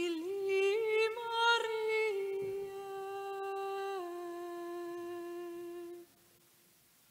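A man sings a long, held chant that rings out in a large echoing hall.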